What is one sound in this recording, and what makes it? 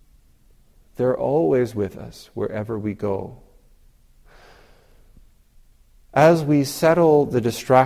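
A man speaks calmly and slowly, close to a microphone.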